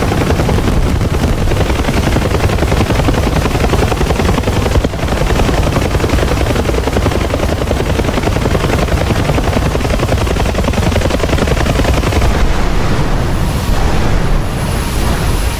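Fire roars and crackles on a burning helicopter.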